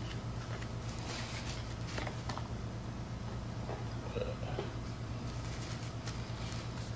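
Paper wrapping rustles and crinkles.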